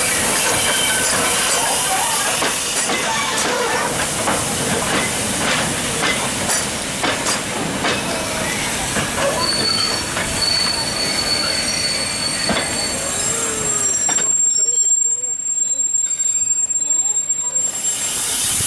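A steam train's carriages rumble along the rails.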